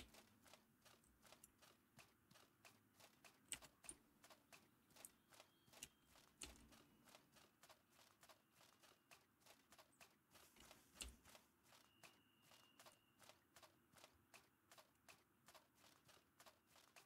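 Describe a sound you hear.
Footsteps tread steadily on grass and earth.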